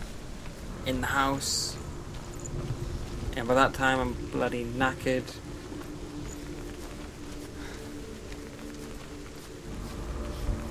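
Footsteps crunch on gravel and stones.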